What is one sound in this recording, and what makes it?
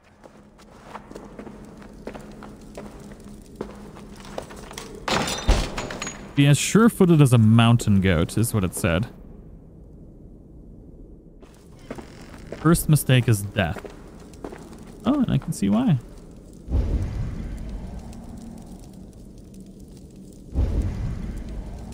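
A torch flame crackles.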